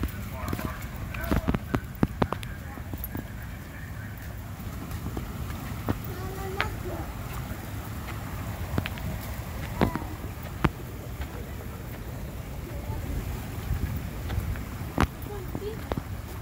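Young children's voices call out nearby.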